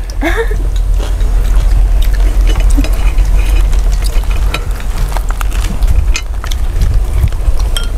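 Chopsticks clink against bowls.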